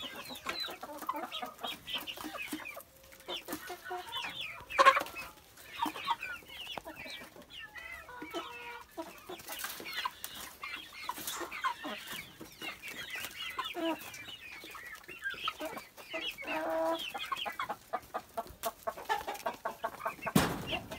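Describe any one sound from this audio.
Many chickens cluck and squawk close by.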